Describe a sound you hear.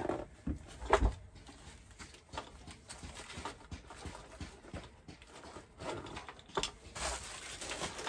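Small objects clatter on a table.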